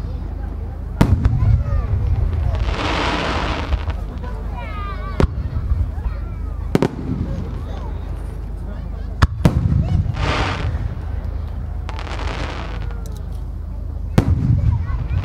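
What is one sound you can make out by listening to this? Aerial firework shells burst overhead with deep booms.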